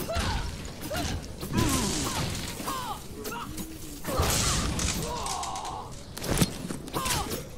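Explosions burst with heavy booms.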